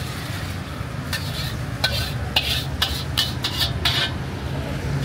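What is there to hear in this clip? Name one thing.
A metal wok clanks sharply several times.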